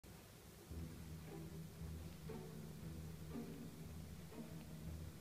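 A small dog growls in low, rhythmic bursts close by.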